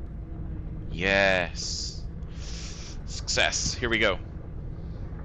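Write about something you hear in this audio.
A young man speaks briefly and loudly into a close microphone.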